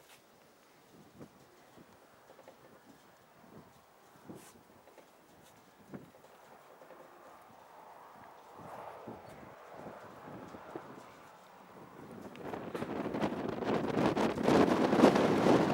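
A flock of pigeons flaps its wings overhead.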